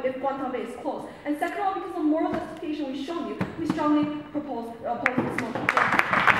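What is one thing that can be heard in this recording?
A young woman speaks calmly into a microphone in an echoing hall.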